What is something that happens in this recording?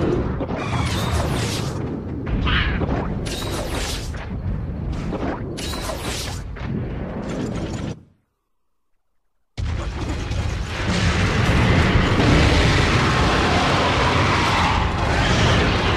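Game sound effects rumble and clatter loudly.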